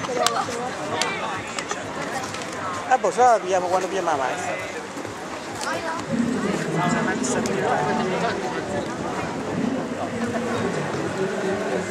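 A crowd murmurs outdoors in the distance.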